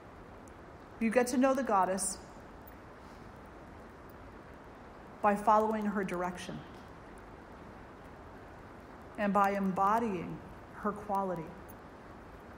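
An elderly woman speaks calmly into a microphone in short phrases with pauses.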